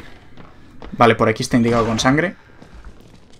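A man speaks close up into a headset microphone.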